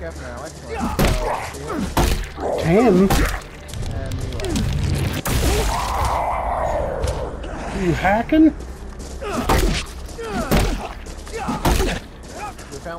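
Heavy blows strike a body with dull thuds.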